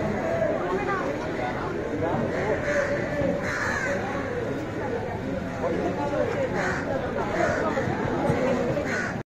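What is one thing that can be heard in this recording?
A crowd of men and women chatter loudly all around outdoors.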